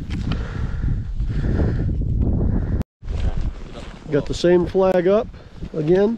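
Boots crunch on snow.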